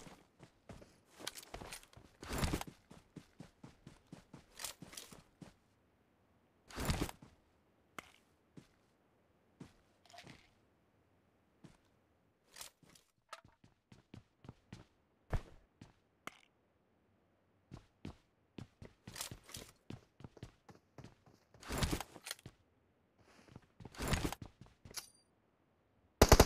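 Footsteps run over grass and then thud on a wooden floor.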